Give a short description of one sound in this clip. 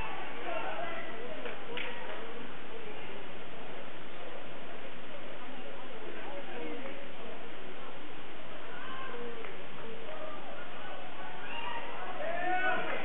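A crowd murmurs and calls out in a large echoing gym.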